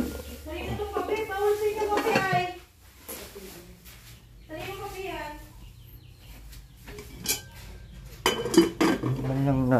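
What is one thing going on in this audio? A metal pot lid clinks.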